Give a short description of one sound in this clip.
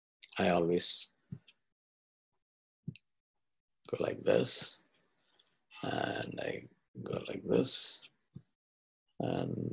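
An elderly man speaks calmly in short phrases, heard through an online call.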